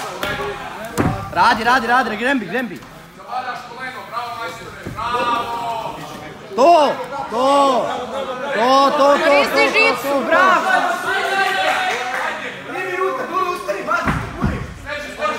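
Bodies thump on a padded mat.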